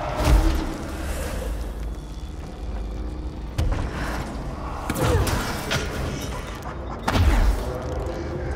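A low rumbling hum fills a large echoing hall.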